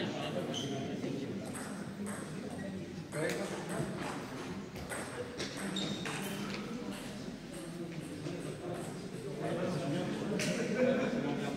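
Several adults chat at a distance in a large echoing hall.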